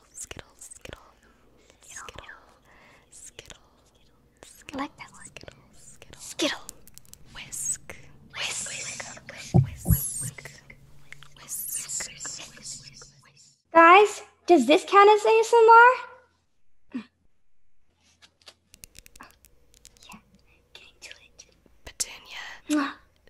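Two young women talk and laugh over an online call, close to their microphones.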